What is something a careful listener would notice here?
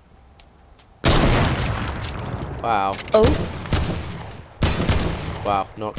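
A rifle fires loud, sharp shots that echo.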